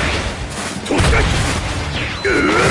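A burst of energy blasts with a loud whoosh.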